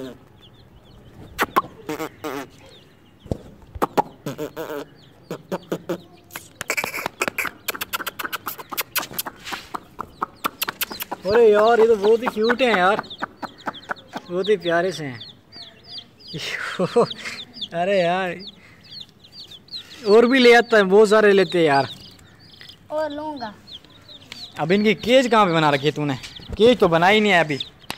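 Chicks cheep repeatedly nearby.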